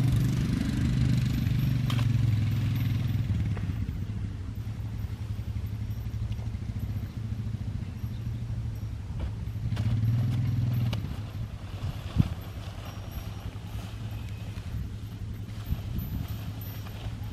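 Hooves thud softly on sand as a horse walks.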